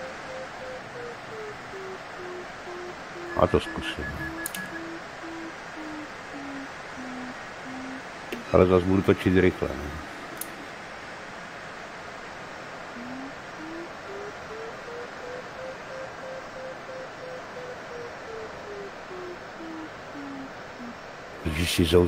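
A variometer beeps in a quick series whose pitch slowly falls and rises.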